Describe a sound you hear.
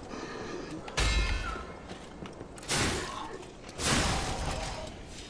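A blade strikes with a sharp metallic clang.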